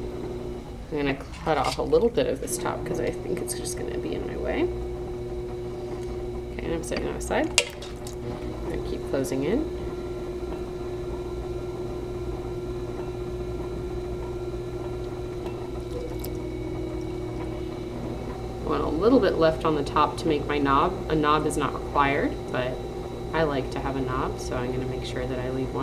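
A woman talks calmly and close by, as if explaining.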